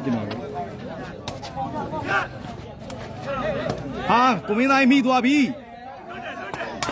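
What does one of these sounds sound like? A large crowd chatters and shouts outdoors.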